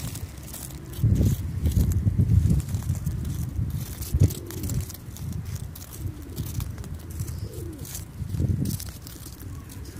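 Wind rumbles on the microphone outdoors.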